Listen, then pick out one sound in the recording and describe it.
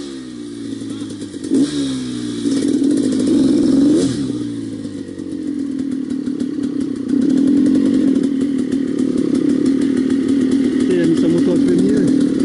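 A dirt bike engine runs close by, revving up and down unevenly.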